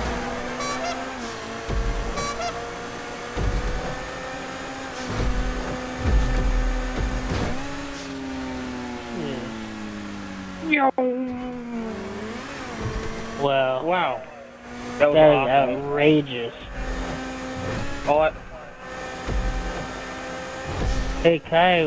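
A sports car engine roars steadily, its pitch shifting as it changes gear.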